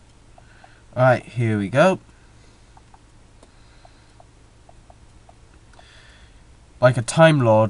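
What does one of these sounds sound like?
A young man speaks in short loud bursts, close to a headset microphone.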